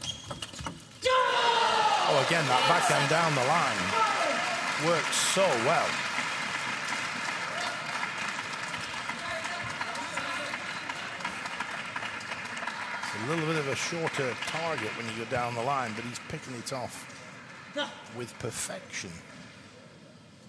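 A crowd cheers and shouts in a large hall.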